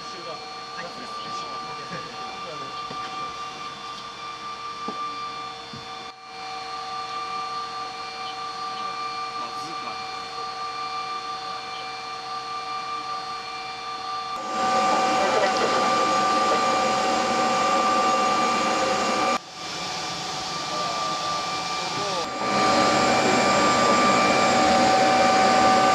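Aircraft engines drone steadily inside a cabin.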